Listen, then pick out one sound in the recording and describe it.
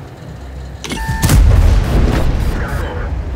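A tank gun fires with a loud, booming blast.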